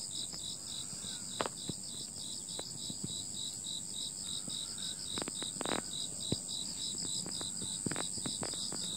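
Insects chirp in a steady, rapid pulsing trill.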